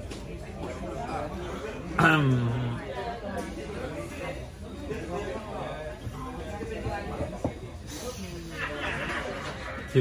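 A young woman giggles close by.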